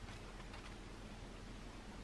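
Book pages flip.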